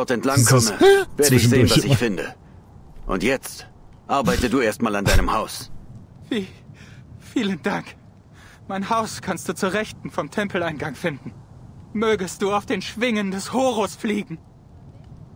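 Two men talk calmly back and forth, heard close up.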